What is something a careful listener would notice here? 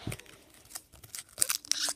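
A foil wrapper crinkles.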